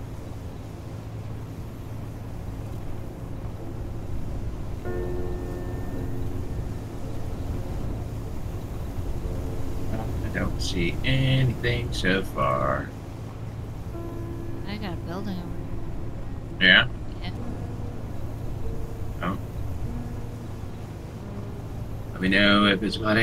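An engine hums steadily and low.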